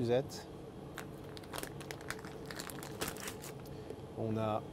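A plastic food pouch crinkles and rustles in a man's hands.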